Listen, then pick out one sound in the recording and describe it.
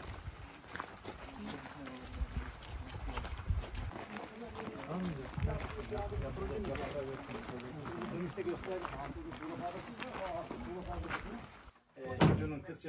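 Footsteps crunch on gravel outdoors.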